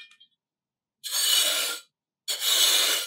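A plastic trowel scrapes through sand.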